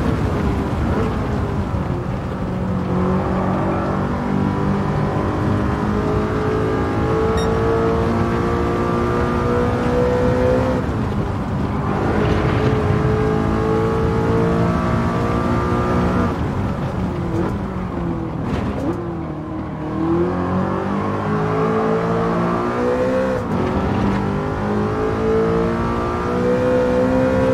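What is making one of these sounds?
A high-revving car engine roars, climbing in pitch through each gear and dropping at every gear change.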